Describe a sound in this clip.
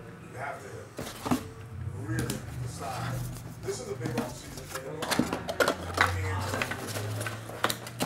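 Cardboard boxes knock and scrape as they are handled.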